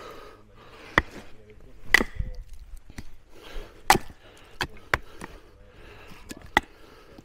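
A wooden baton knocks sharply on the back of a knife blade.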